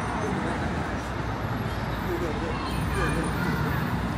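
A bus drives past.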